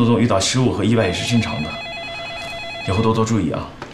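A phone rings.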